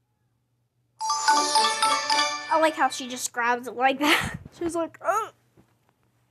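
A cheerful jingle plays.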